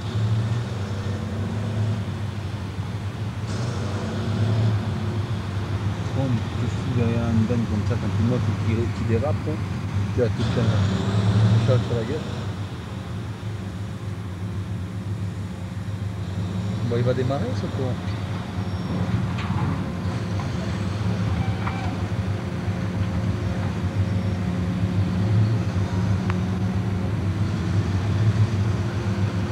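A large diesel engine rumbles steadily close by.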